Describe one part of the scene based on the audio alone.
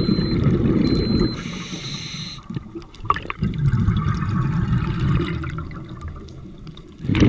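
Water rumbles and swishes, heard muffled underwater.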